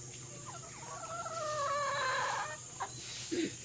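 A rooster crows nearby.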